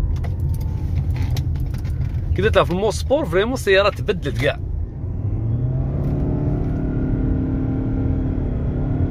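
A car's engine and tyres rumble low and steady, heard from inside the car.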